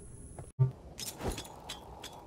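A grenade bounces and explodes with a loud blast.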